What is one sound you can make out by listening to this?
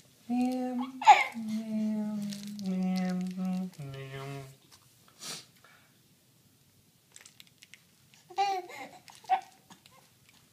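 A baby coos and squeals.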